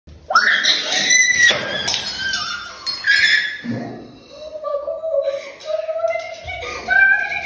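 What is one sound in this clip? A young woman shrieks and talks with animation close by.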